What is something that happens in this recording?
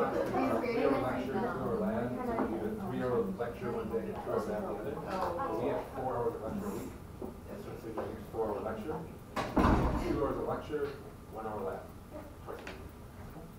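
A man talks across a room, heard from a distance.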